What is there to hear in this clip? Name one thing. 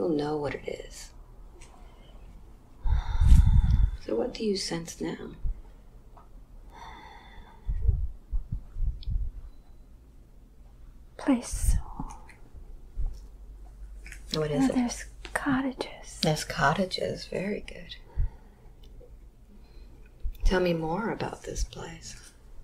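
An elderly woman speaks slowly and wearily, close by.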